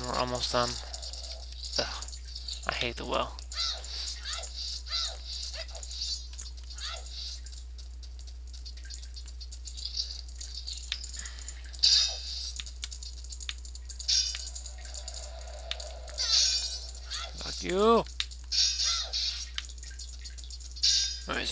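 Footsteps patter on a stone floor.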